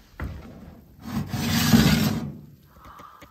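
A metal tray scrapes as it slides out of an oven.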